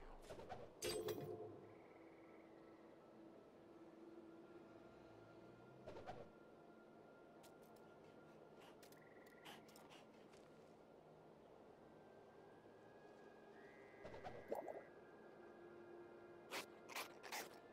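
Spells crackle and burst in short flurries.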